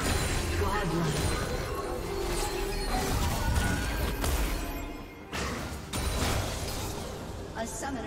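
Magic blasts crackle and boom in a fast video game fight.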